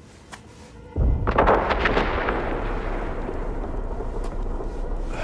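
A loud explosion booms in the distance and rumbles on.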